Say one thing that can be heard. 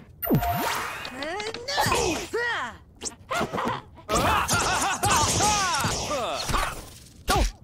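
A young boy talks with animation into a close headset microphone.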